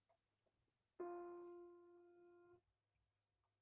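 A piano note rings out and fades.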